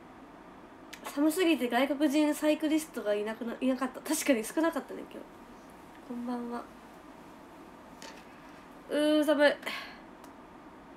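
A young woman speaks close to a microphone, brightly and with pauses.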